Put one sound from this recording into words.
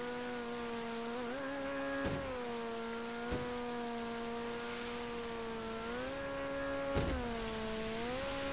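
Water sprays and hisses behind a speeding boat.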